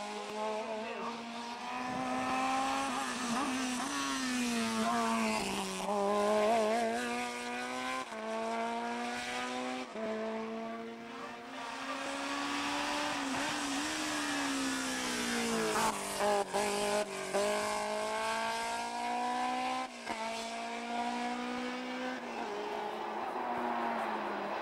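Racing car engines rise in pitch and drop sharply at each gear change.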